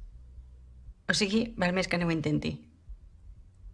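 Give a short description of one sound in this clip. A middle-aged woman answers calmly and close by.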